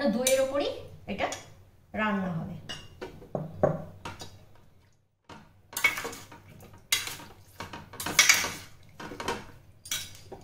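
A metal spoon scrapes and clinks against a steel bowl.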